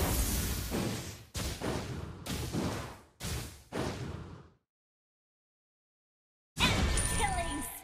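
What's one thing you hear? Game spell effects crash and whoosh in short bursts.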